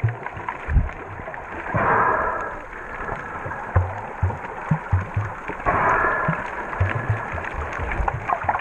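Water gurgles and thumps, heard from underwater.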